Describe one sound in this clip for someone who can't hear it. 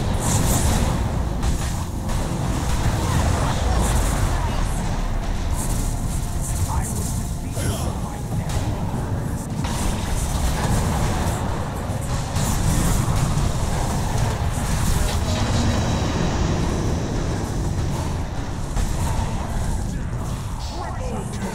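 Magic spells crackle and explode in a busy battle.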